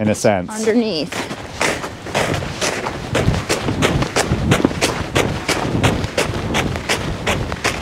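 Horses' hooves crunch steadily on packed snow.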